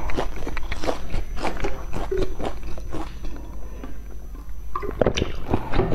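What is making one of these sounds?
A young woman chews crunchy food close to a microphone.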